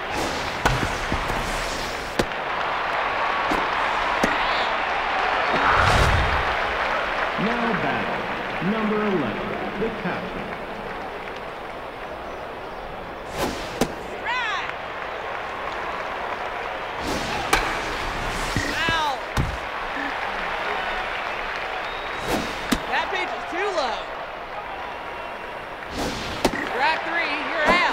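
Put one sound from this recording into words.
A large crowd murmurs and cheers.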